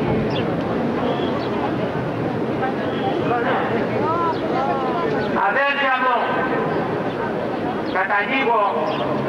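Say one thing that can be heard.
An elderly man speaks through a loudspeaker to an outdoor crowd.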